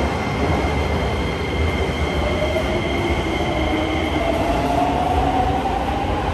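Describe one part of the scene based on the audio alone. A subway train rolls past, its wheels rumbling and motors whining.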